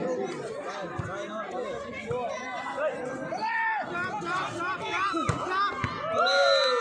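A volleyball is struck with a thump.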